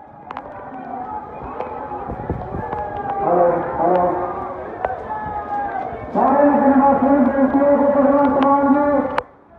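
A large crowd shouts and chants loudly outdoors.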